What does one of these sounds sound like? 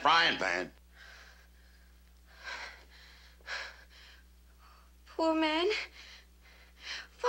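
A young woman speaks in a trembling, upset voice.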